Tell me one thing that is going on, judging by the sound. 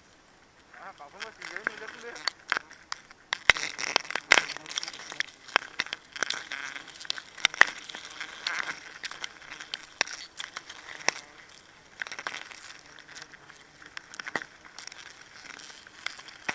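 Leaves and twigs rustle and crackle close by.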